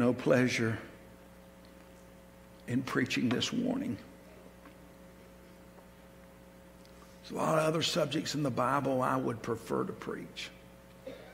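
An older man speaks with feeling into a microphone, pausing between phrases.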